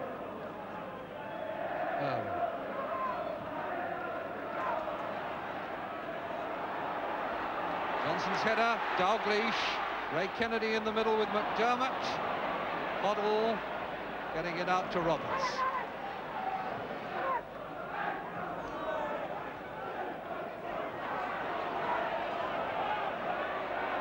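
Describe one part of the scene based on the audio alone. A large crowd roars and cheers steadily in a big open stadium.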